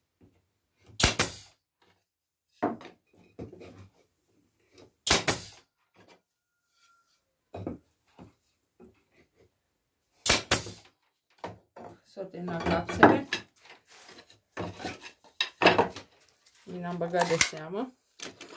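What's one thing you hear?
A pneumatic nail gun fires with sharp, loud bangs now and then.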